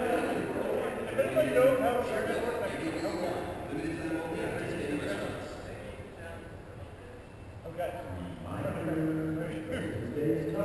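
A group of men talk together in a large echoing hall, heard from a distance.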